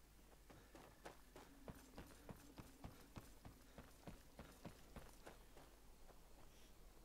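Footsteps thud steadily on wooden planks and snow.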